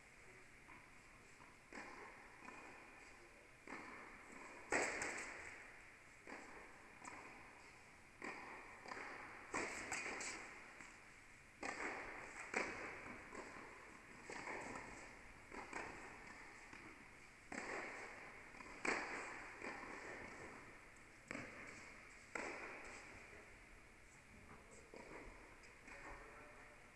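Tennis balls bounce on the court.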